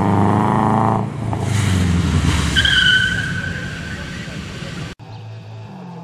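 A rally car engine roars loudly at high revs.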